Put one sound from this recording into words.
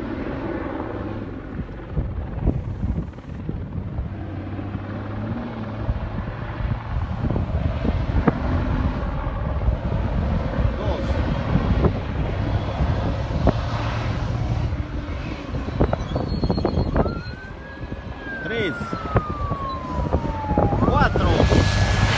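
A rally car's engine roars far off as it drives through soft sand.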